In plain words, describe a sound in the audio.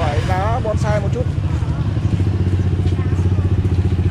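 Motorbike engines rumble past nearby.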